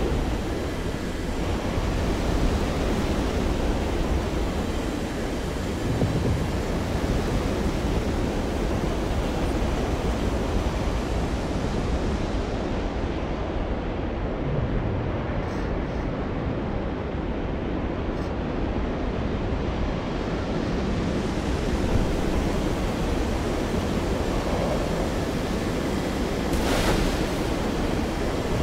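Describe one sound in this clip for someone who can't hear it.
Wind rushes past at high speed, muffled for a while.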